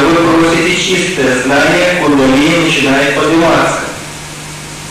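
A woman sings softly into a microphone, heard through a loudspeaker.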